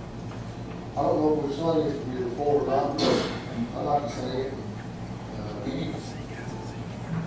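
A man speaks calmly through a microphone in a room with some echo.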